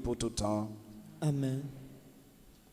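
A man chants into a microphone in an echoing room.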